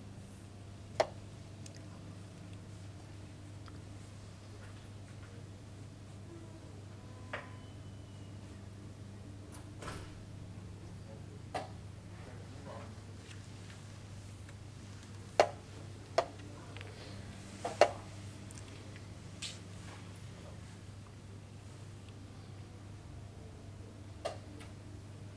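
Wooden chess pieces knock down onto a board now and then.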